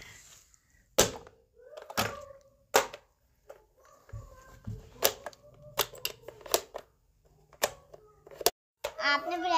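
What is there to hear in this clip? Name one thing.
Plastic toy buttons click under a child's hand.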